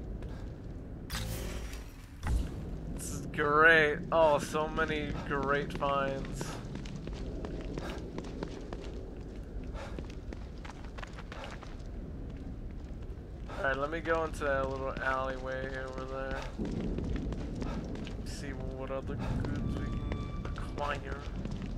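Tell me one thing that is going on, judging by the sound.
Footsteps fall steadily on pavement.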